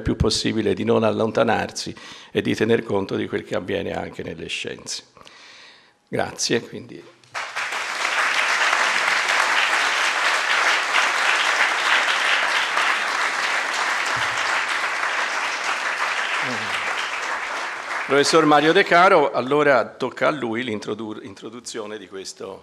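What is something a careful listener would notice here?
An elderly man speaks calmly into a microphone in an echoing hall.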